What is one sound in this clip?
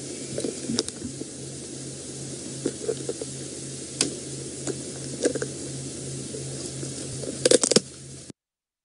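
A lion crunches and tears at its prey up close.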